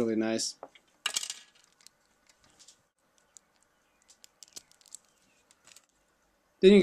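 Small plastic parts click softly as they are handled.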